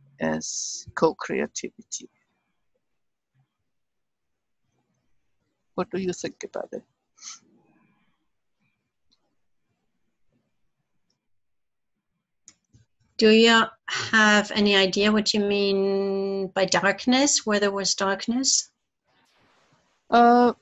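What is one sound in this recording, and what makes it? An elderly woman speaks calmly over an online call, in short bursts with pauses.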